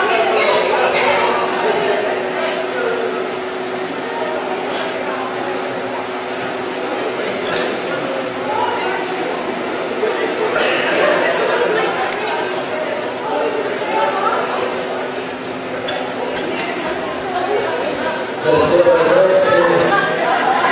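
Young men and women chatter and laugh nearby.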